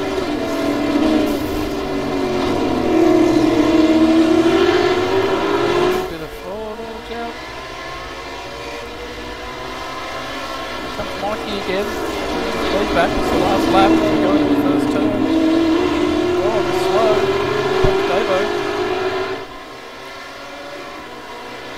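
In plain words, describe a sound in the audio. Racing car engines roar, rising and falling in pitch as the cars race closely together.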